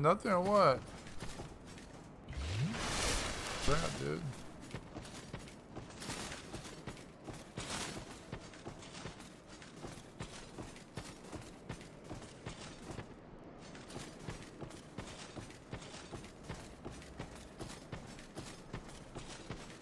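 Armoured footsteps clank rhythmically as a game character runs.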